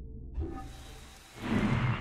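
A horse trots over open ground.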